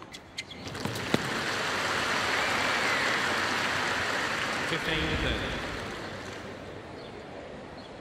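A crowd applauds loudly, then fades.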